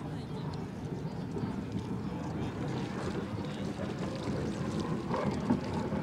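Spray hisses and crashes as a racing boat turns hard on the water.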